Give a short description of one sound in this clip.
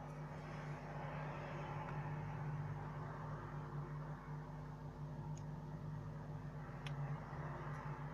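A phone battery clicks as it is pressed into place.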